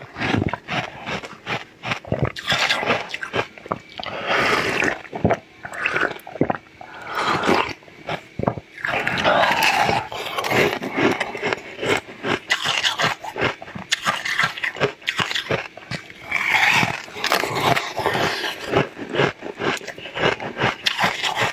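A man bites and chews jelly candy close to the microphone.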